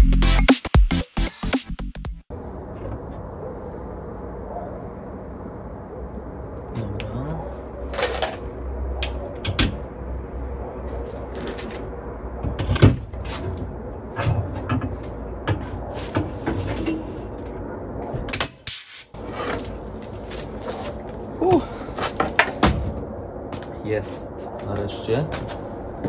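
A metal frame knocks and clanks as it is handled.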